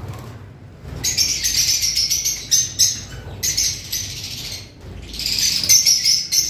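Small birds chirp and twitter.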